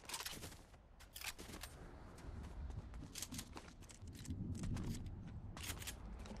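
Quick footsteps patter on a hard road.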